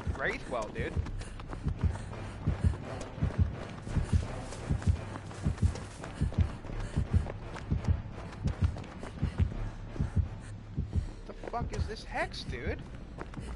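Footsteps thud quickly on soft ground as someone runs.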